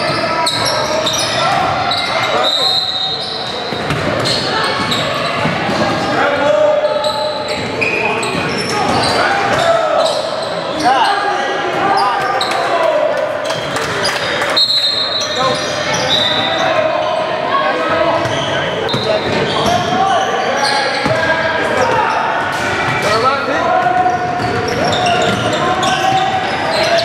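Young players shout and call out to each other on the court.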